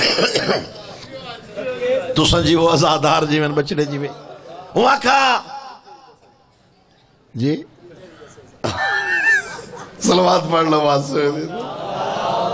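A man recites loudly and with passion into a microphone, heard through loudspeakers with echo.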